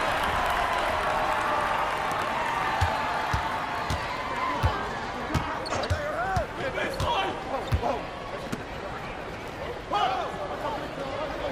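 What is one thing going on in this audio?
A crowd murmurs and cheers steadily in the background.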